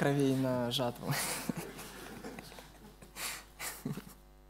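A young man laughs softly into a microphone.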